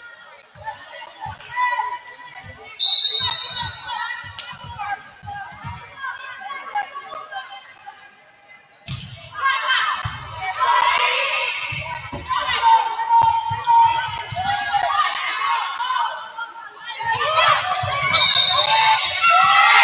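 A volleyball is hit back and forth with sharp thumps in a large echoing gym.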